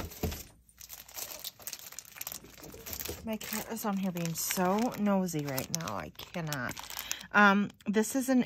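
A plastic package crinkles as hands handle it.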